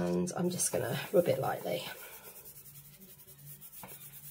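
A hand rubs softly across a sheet of paper.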